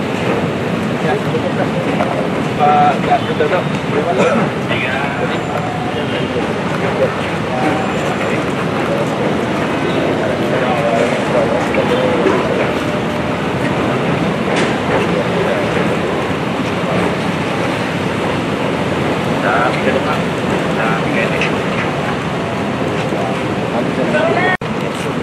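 Several men talk in the background outdoors.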